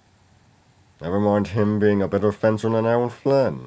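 A young man speaks calmly, close to a microphone.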